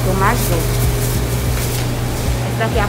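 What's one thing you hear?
A plastic bag rustles and crinkles close by.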